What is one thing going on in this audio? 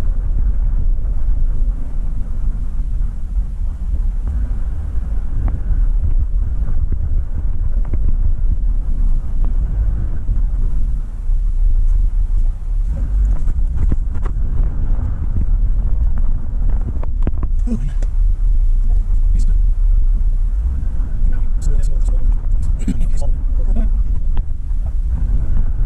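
Tyres roll over pavement.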